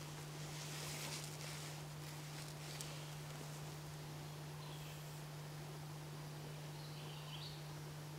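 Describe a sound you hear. A large bird walks through dry leaves.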